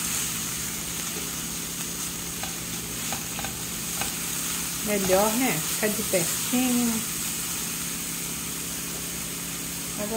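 Onions sizzle steadily in a frying pan.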